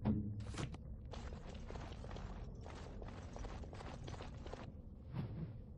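Footsteps crunch quickly on rocky ground.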